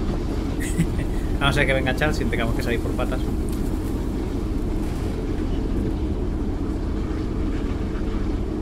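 A train engine rumbles low and steady.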